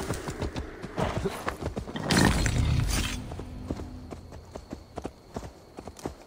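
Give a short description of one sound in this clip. Hooves thud on grass.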